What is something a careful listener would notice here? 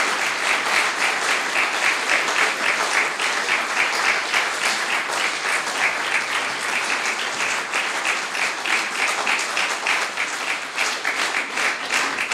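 An audience claps steadily in rhythm in a room.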